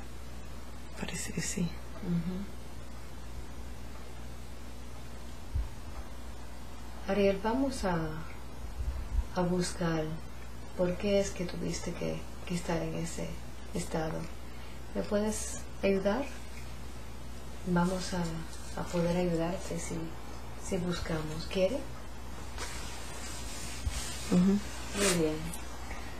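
A woman speaks in short phrases close to the microphone.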